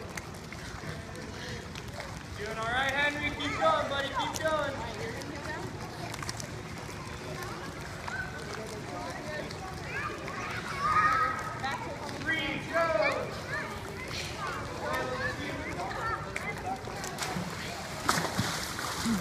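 Water splashes as children swim.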